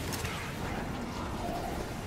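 An electric crackle zaps loudly.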